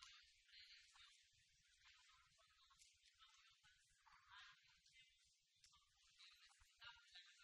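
A crowd of people murmurs and chatters close by.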